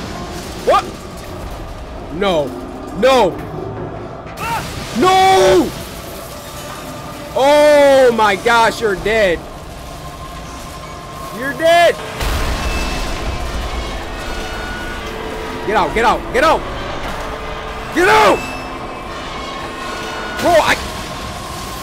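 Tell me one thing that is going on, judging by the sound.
A man speaks with animation into a close microphone, exclaiming loudly at times.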